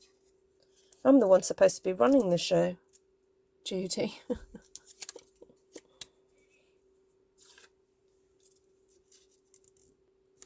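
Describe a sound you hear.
Thin plastic sheets rustle and crinkle softly as they are handled.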